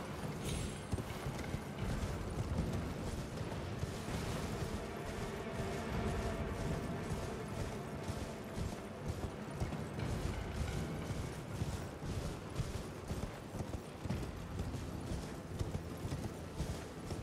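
A horse's hooves gallop steadily over grass and rock.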